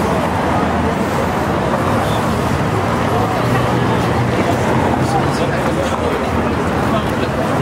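A large crowd chatters loudly all around outdoors.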